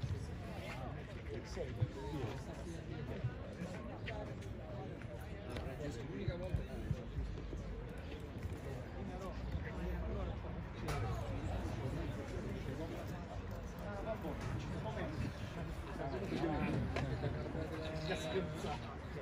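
Several men chat nearby outdoors.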